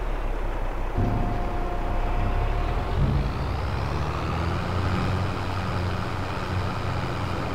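A trailer's tipping bed whirs as it rises.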